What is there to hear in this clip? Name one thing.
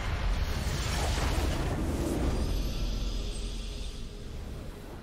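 A game crystal bursts with a loud, crackling magical blast that slowly fades.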